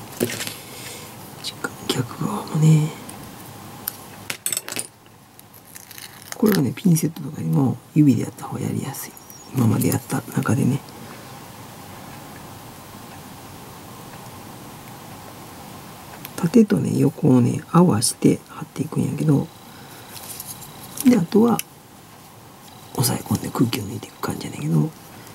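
Small plastic model parts click and tap as fingers handle them.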